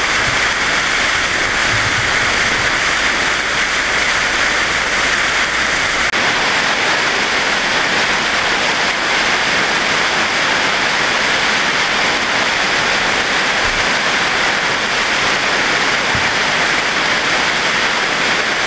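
Water gushes and roars loudly, rushing steadily down a channel.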